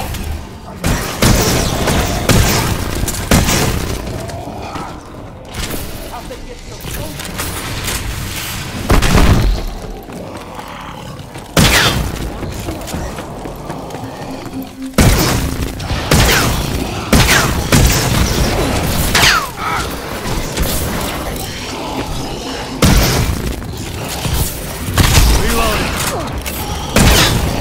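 Energy weapon fire crackles and buzzes in loud bursts.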